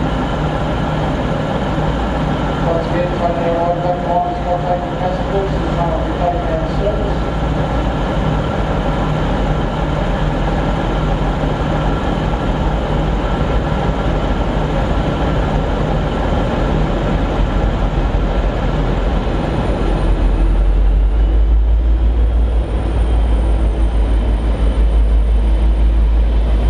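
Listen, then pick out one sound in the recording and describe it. A diesel locomotive engine rumbles steadily and grows louder as it pulls in close by.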